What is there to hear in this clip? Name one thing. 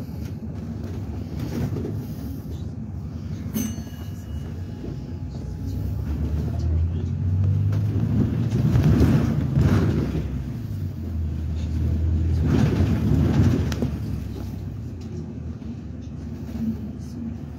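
Tyres hum on a wet road.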